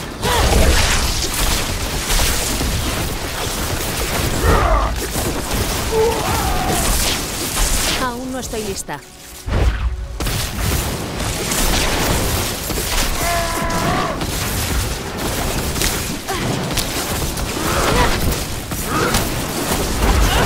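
Magic spells crackle and blast in rapid bursts.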